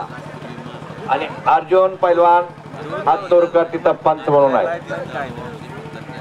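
A man calls out loudly over a loudspeaker outdoors.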